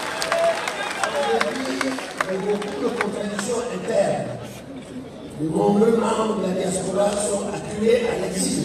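A man speaks into a microphone over a loudspeaker outdoors, with a slight echo.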